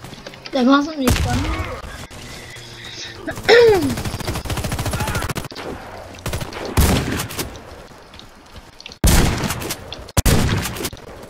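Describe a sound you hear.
Shotgun blasts boom sharply now and then.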